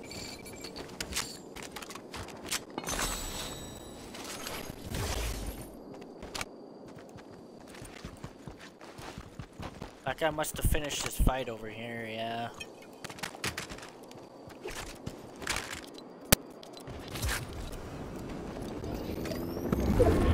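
Footsteps patter quickly on dirt as a character runs.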